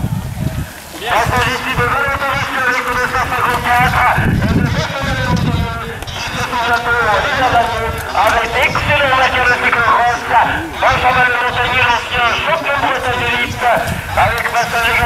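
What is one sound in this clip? Spectators shout and cheer outdoors nearby.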